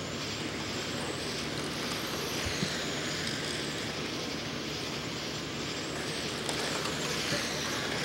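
Tyres of model cars skid and scrabble on a dirt track.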